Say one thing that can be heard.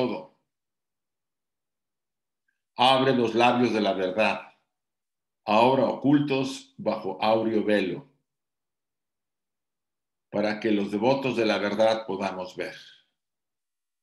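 An elderly man speaks calmly and slowly over an online call, with pauses.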